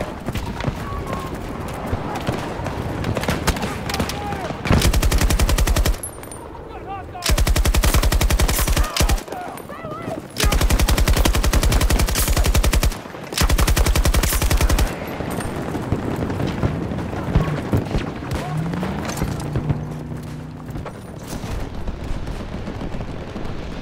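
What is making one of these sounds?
Explosions and gunfire rumble in the distance.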